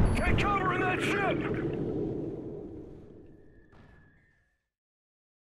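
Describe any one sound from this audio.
Explosions boom and rumble underwater, then fade away.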